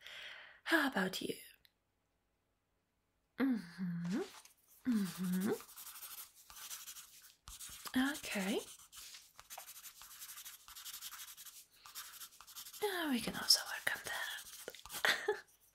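A young woman speaks softly and closely into a microphone.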